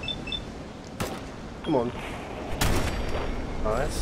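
Rifle shots ring out sharply.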